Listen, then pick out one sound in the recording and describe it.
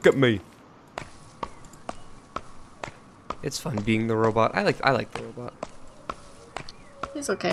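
Footsteps tap lightly and evenly on the ground.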